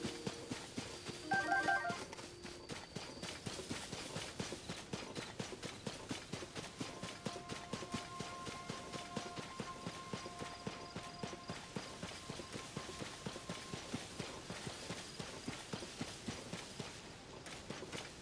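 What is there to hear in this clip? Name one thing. A horse gallops steadily over grass with quick hoofbeats.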